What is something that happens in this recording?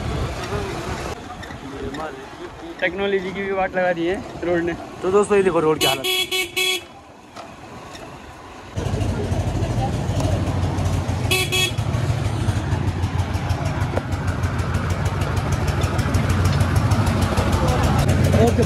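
A motorcycle engine hums at low speed.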